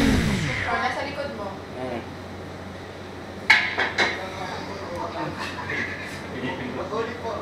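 A young girl babbles nearby.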